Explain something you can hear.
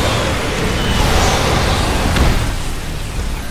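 A large explosion booms loudly.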